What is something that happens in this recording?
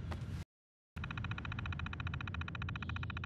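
A computer terminal hums steadily.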